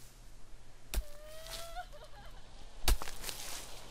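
Clumps of dirt thud into a hole.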